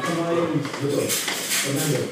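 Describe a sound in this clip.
A child's footsteps climb stairs.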